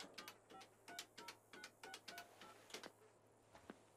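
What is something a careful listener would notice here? Telephone keypad buttons beep in quick succession.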